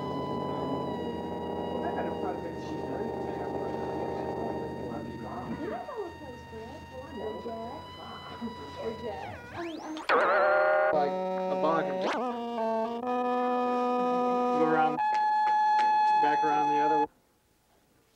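A synthesizer plays sustained electronic tones that bend and change in pitch.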